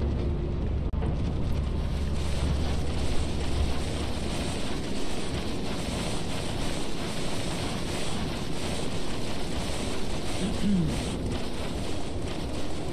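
Wind blows steadily outdoors.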